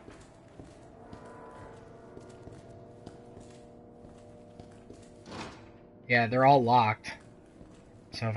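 Footsteps echo on a hard floor.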